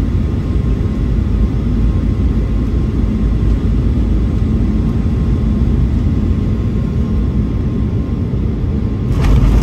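A jet engine roars steadily from inside an airliner cabin.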